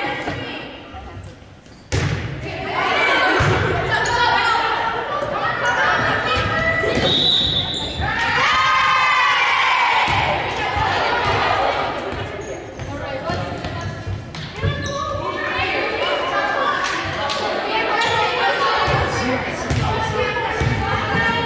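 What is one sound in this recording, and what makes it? Young women shout and call out to each other in a large echoing gym.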